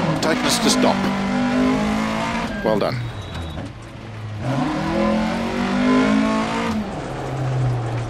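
Gravel crunches under tyres.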